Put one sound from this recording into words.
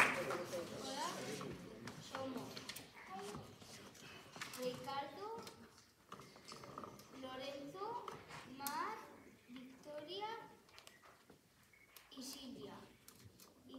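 Children talk quietly among themselves.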